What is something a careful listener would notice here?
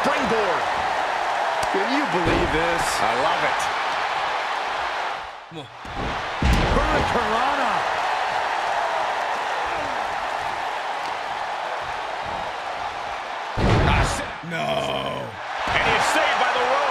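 A crowd roars and cheers steadily in a large arena.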